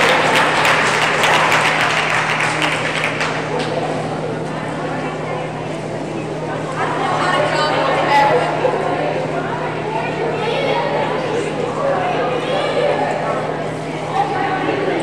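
Voices of a crowd chatter and echo around a large hall.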